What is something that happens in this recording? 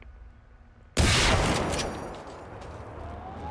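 A shotgun fires a loud blast that rings out and fades.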